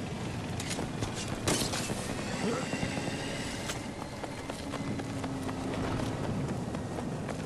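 Gunshots crack repeatedly nearby and in the distance.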